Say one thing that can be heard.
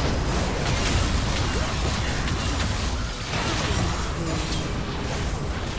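Game spell effects crackle and burst in a fight.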